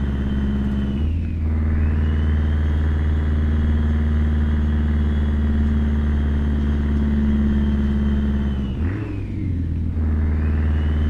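A truck engine dips briefly as the gears shift, then pulls again.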